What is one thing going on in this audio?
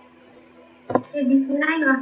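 A young woman speaks loudly through an online call.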